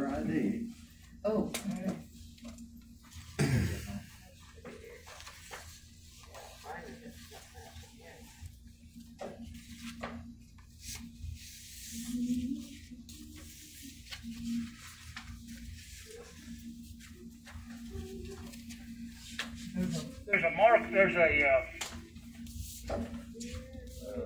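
An elderly man speaks calmly through a mask over an online call.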